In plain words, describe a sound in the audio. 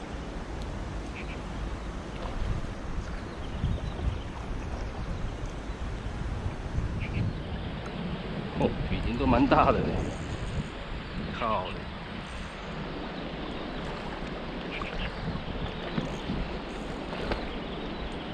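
A shallow river ripples and flows over stones outdoors.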